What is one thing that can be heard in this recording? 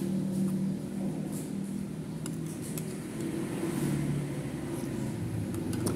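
Utensils clink against a ceramic bowl.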